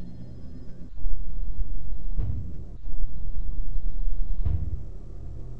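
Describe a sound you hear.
A deep rumbling whoosh swells and fades.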